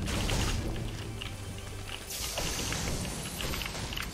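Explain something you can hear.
A treasure chest opens with a shimmering chime.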